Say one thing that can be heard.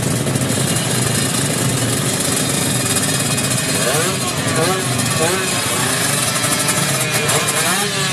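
A motorcycle engine revs loudly, its pitch rising and falling in bursts.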